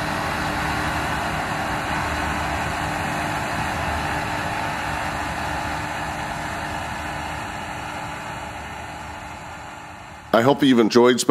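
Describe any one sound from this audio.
A combine harvester's engine drones steadily nearby.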